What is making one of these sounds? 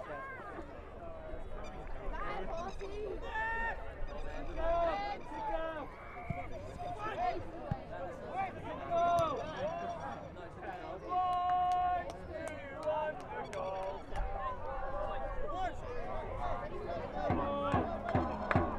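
Young men shout to each other across an open playing field.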